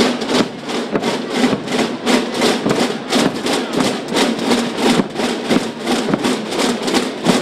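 A marching band's brass plays loudly outdoors.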